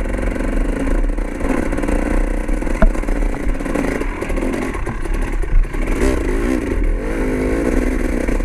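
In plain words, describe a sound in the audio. Tyres crunch over gravel and rocks.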